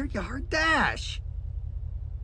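A man speaks in a sly, cheerful voice.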